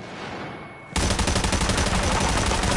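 A rifle fires loud rapid bursts close by.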